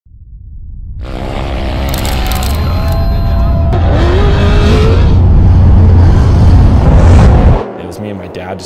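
An off-road truck engine roars loudly.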